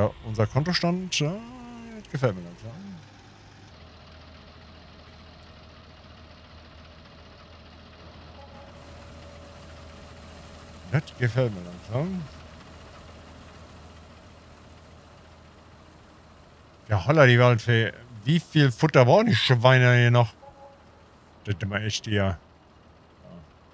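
A tractor engine hums low and steadily.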